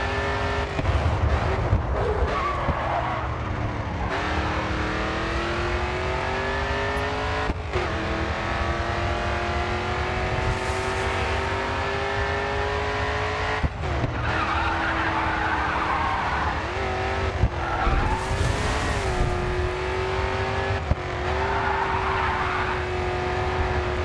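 Tyres screech as a race car slides through corners.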